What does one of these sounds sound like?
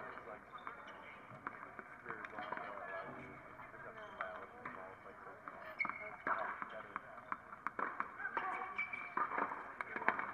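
Young women talk quietly to each other close by.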